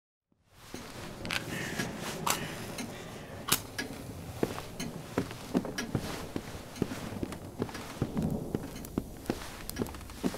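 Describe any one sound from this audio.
Footsteps tap steadily across a hard floor.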